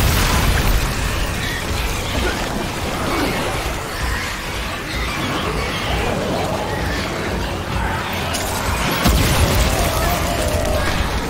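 A smoke flare hisses steadily.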